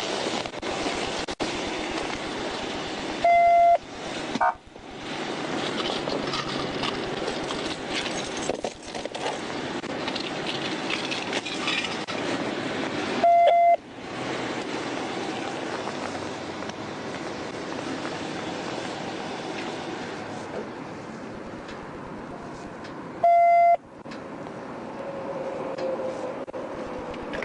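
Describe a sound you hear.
A man talks loudly outdoors.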